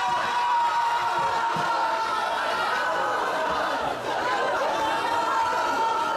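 Several men and women talk and chatter nearby.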